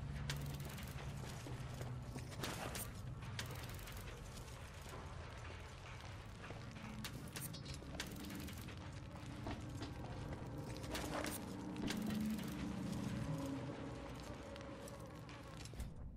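Footsteps run over dirt ground.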